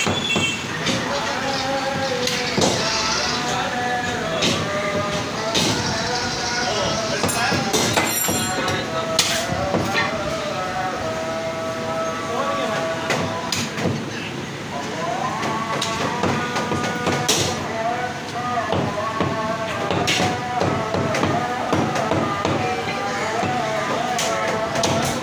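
A heavy cleaver chops through meat and bone onto a wooden block.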